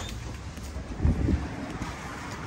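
A door thuds as its closer arm moves.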